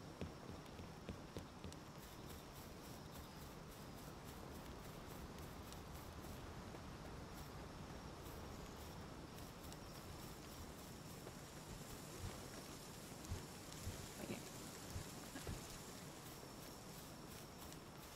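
A torch flame crackles steadily.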